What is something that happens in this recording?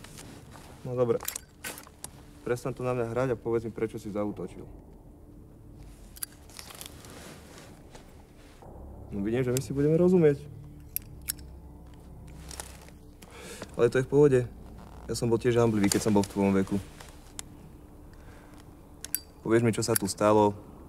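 A young man speaks quietly and roughly, close by.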